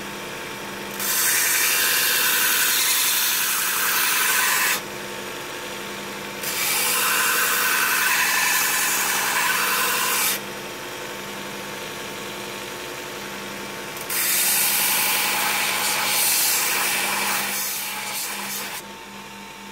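Metal grinds loudly against a belt sander with a harsh hiss.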